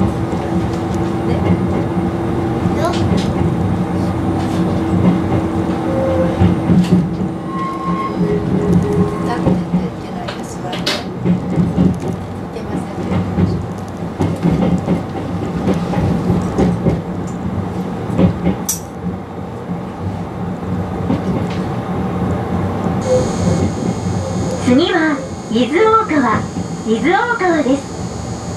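Train wheels clack over rail joints and points.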